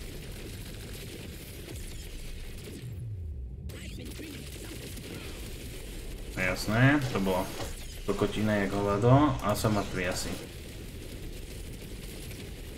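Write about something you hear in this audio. Video game gunfire and explosion effects crackle steadily.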